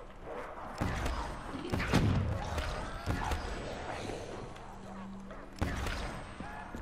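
A gun fires with sharp, loud blasts.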